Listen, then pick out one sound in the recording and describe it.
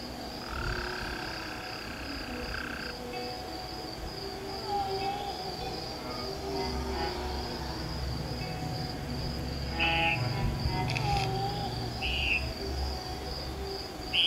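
Light game music plays steadily throughout.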